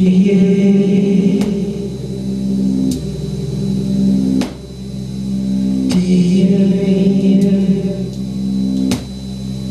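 A man plays sustained electronic keyboard chords that change every second or so.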